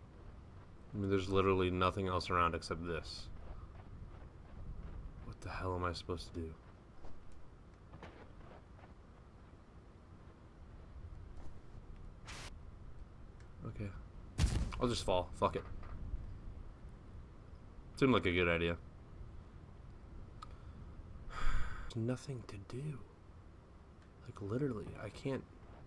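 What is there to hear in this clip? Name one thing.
A young man talks with animation into a headset microphone, in short bursts.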